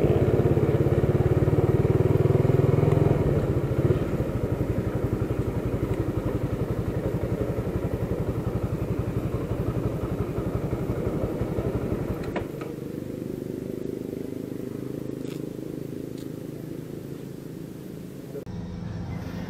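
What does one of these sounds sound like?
A motorcycle engine idles and rumbles close by.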